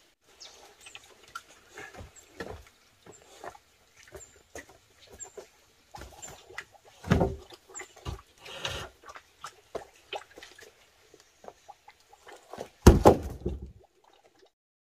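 Wooden poles knock and thud against each other on the ground.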